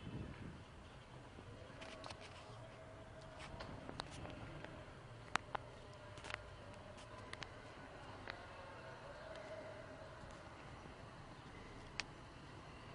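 Street traffic rumbles steadily in the distance below.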